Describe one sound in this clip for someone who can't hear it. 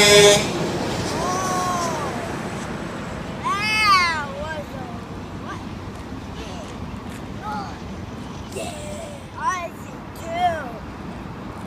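A young boy shouts and squeals excitedly nearby.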